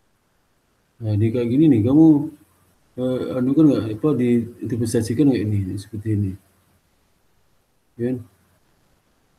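A man speaks calmly into a computer microphone, heard over an online call.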